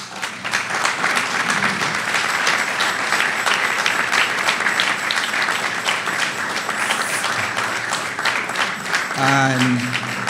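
A crowd claps and applauds in a large hall.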